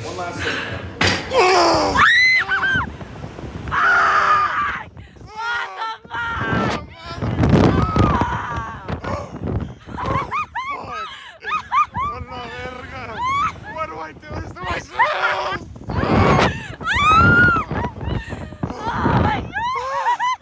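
A young man screams and whoops loudly up close.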